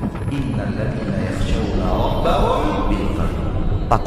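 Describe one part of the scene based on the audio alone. A man speaks with feeling into a microphone.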